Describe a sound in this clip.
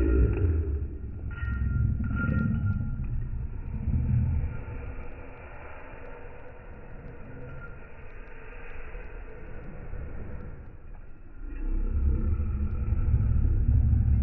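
A Doberman growls.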